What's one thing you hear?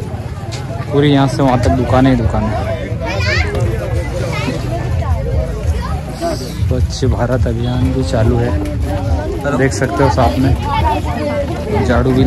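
Children talk and call out nearby.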